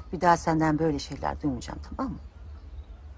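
A woman speaks softly and with emotion close by.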